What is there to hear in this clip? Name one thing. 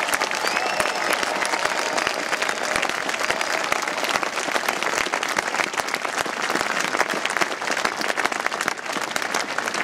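A crowd claps and cheers loudly outdoors.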